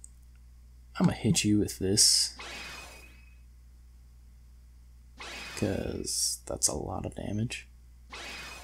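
Weapons clash and magic blasts crackle.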